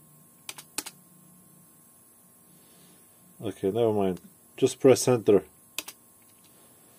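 A plastic keyboard knocks and clatters as it is moved.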